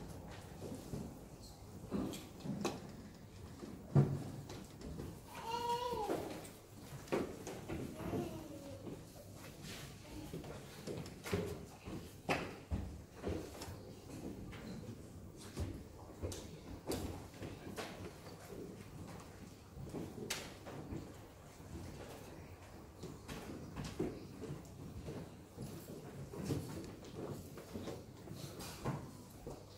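A man murmurs prayers quietly in a large echoing room.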